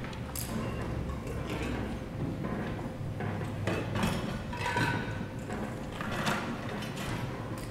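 Objects clatter and knock as a man rummages below a lectern.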